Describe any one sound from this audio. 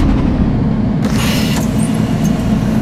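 Bus doors open with a hiss of air.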